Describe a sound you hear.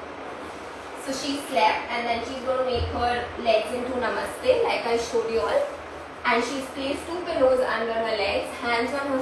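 A young woman talks with animation and laughs nearby.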